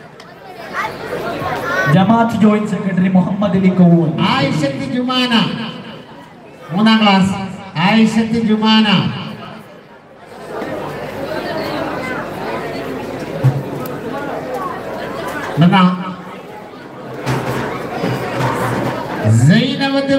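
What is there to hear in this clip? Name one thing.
A man speaks with animation into a microphone over loudspeakers.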